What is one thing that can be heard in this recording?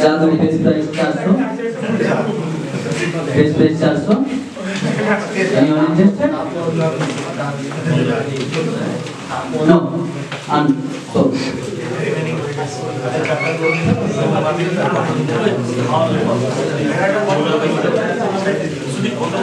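Many young men chatter and talk over one another in a room with some echo.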